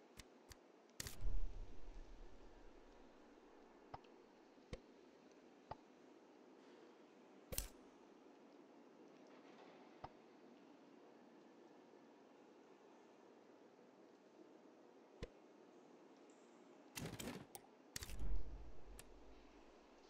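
Panels slide and thud into place with short clicks.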